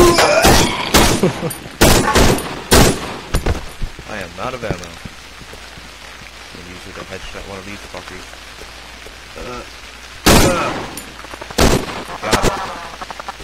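A pistol fires loud shots in quick bursts.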